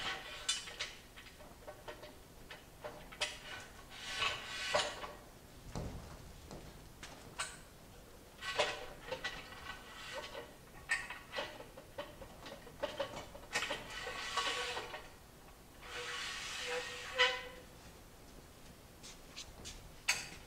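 Metal tubing clanks and rattles.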